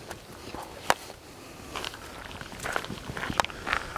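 Leaves and stems rustle as a man walks through tall plants.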